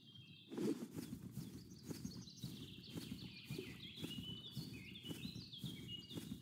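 Footsteps crunch over leaves and soft earth.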